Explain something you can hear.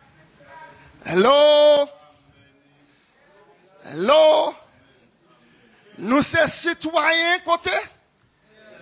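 A man preaches loudly through a microphone, drawing out long sung calls.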